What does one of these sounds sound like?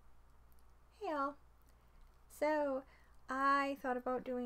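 A young woman speaks brightly and expressively, close to a microphone.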